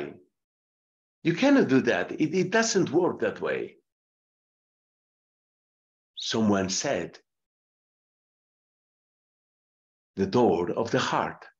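A man speaks calmly and clearly into a microphone, in short bursts with pauses.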